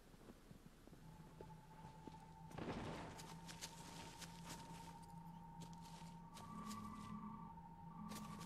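A bright, steady ringing tone hums as a sword glows.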